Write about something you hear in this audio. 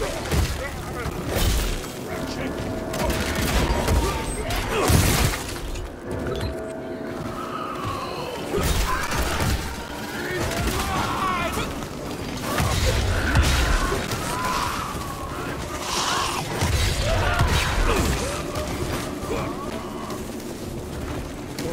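Gunshots boom in quick bursts.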